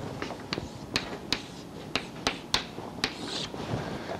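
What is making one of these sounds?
Chalk taps and clicks against a board.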